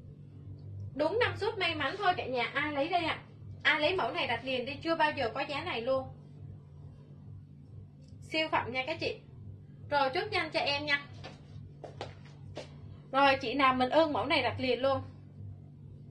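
A young woman speaks calmly and close to a microphone, in short bursts.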